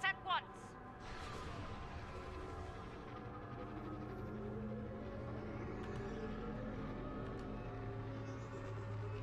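A huge explosion roars and rumbles steadily.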